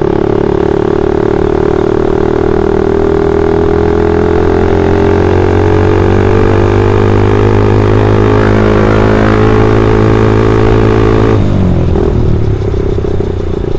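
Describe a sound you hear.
A motorcycle engine hums steadily up close, then drops in pitch as it slows.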